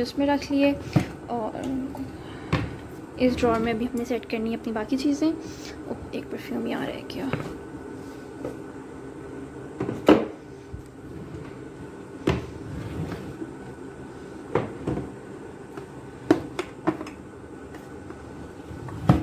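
A wooden drawer slides open and shut with knocks and thuds.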